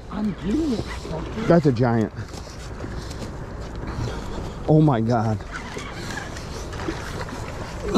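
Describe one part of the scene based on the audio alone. A fish splashes in the water.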